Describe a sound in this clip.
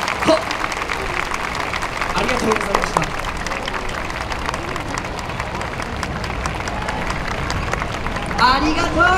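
A large outdoor crowd cheers and chatters.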